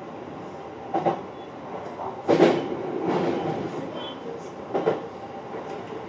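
Train wheels clatter over rail points.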